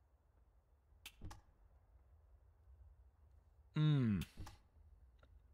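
A soft menu click sounds as a selection changes.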